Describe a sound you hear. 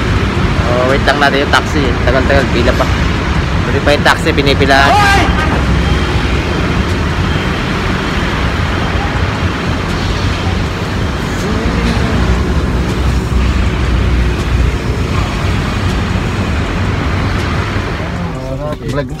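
Traffic rumbles steadily in the background outdoors.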